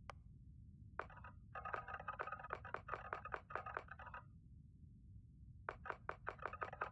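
Quick interface ticks click in rapid bursts.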